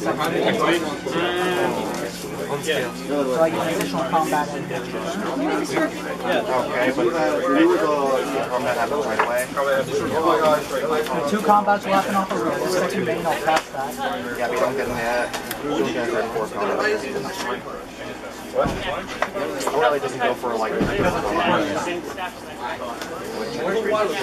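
Cards riffle and flick as a deck is shuffled in the hands.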